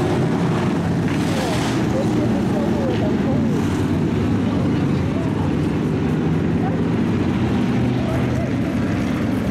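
Race car engines roar loudly around a dirt track.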